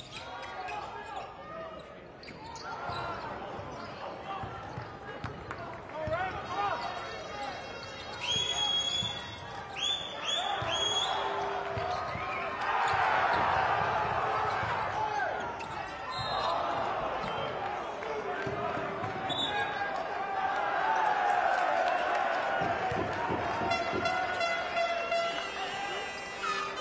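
A large indoor crowd cheers and shouts in an echoing arena.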